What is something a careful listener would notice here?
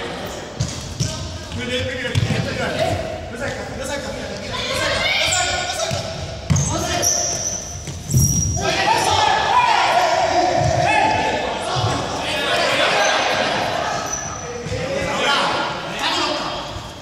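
Young men and women shout and call out to each other in a large echoing hall.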